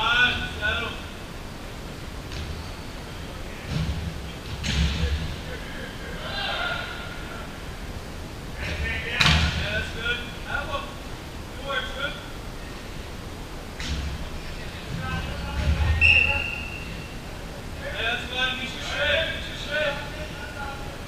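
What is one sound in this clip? Players shout and call to each other across a large echoing indoor hall.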